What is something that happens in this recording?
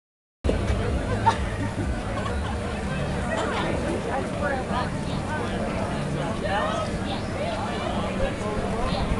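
A busy crowd chatters outdoors.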